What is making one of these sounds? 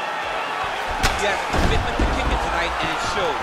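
A heavy punch lands with a sharp thud.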